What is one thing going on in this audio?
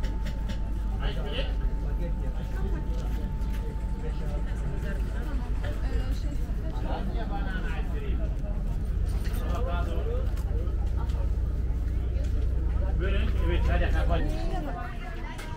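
A few adults talk casually nearby, outdoors.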